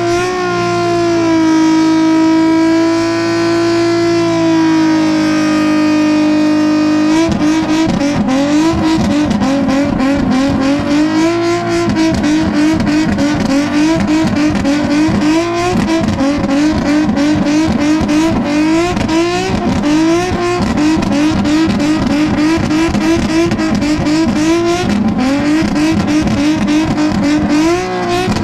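A car engine roars at high, steady revs, then bounces rapidly against its limit.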